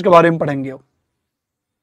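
A young man speaks briefly and clearly into a microphone, then falls quiet.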